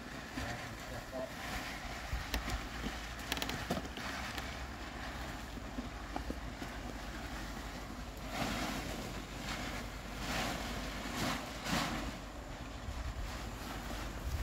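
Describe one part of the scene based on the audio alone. A heavy tarp scrapes and rustles as it is dragged across concrete.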